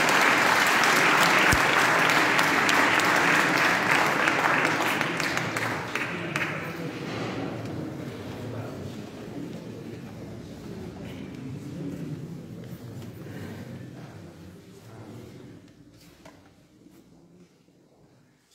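A men's choir sings softly in a large echoing hall, slowly fading to quiet.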